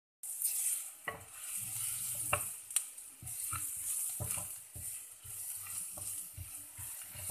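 A thick sauce bubbles and simmers.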